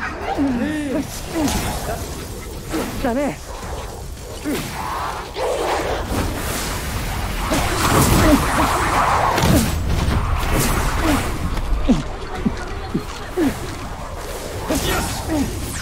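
Magical energy blasts zap and crackle in quick bursts.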